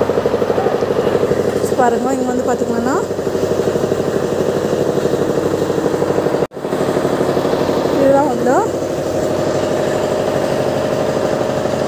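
A diesel tractor engine idles with a steady chugging throb nearby.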